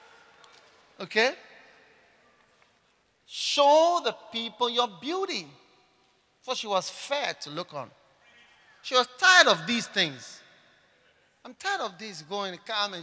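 A man speaks with animation through a microphone and loudspeakers, echoing in a large hall.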